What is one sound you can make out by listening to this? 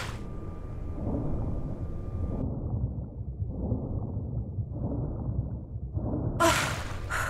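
Muffled water swishes underwater.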